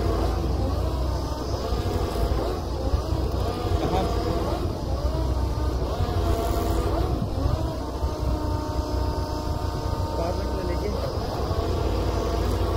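A drilling rig's engine rumbles steadily and loudly.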